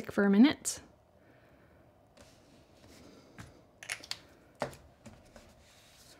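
Paper rustles and taps softly as hands fold and press it.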